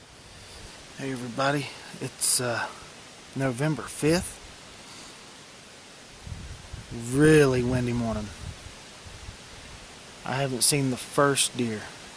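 A man speaks quietly and close to the microphone, outdoors.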